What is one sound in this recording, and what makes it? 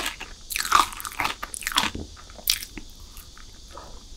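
A young woman bites into a soft chocolate cake close to a sensitive microphone.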